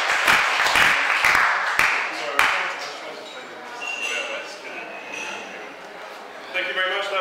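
A vibraphone rings out with struck bright notes.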